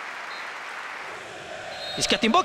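A referee blows a short whistle blast.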